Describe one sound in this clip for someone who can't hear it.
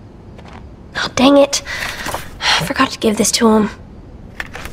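A boy mutters to himself with mild annoyance, close by.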